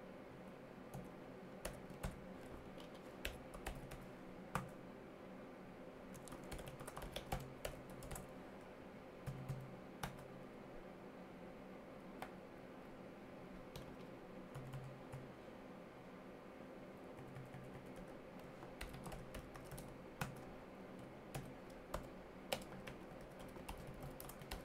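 Keys clack on a computer keyboard in short bursts.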